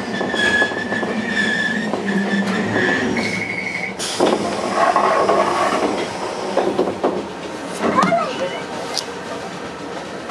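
A train rumbles along the rails.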